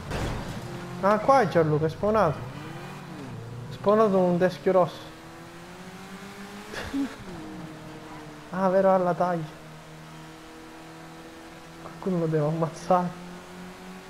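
Tyres squeal as a car skids through bends.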